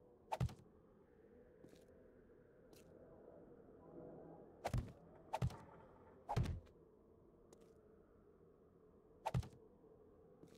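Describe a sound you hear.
Heavy stone blocks thud into place, one at a time.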